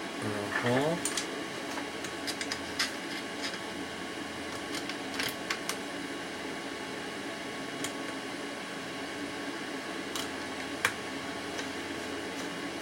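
Small metal parts click and tap.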